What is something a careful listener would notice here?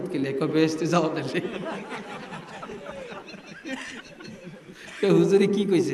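An elderly man preaches with animation into a microphone, heard through loudspeakers.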